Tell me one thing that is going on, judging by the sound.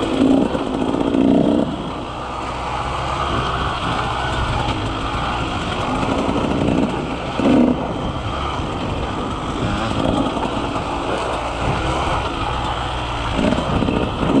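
Bicycle tyres crunch and rattle over a rocky dirt trail.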